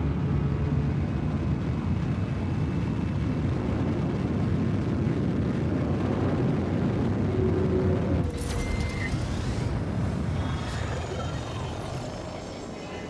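A spaceship engine roars with a deep, steady rumble.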